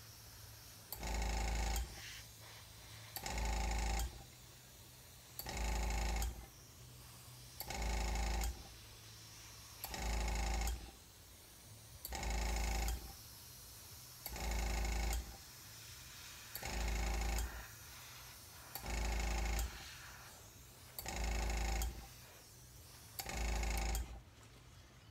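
An airbrush hisses in short, regular bursts.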